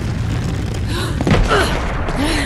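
A young woman cries out in alarm.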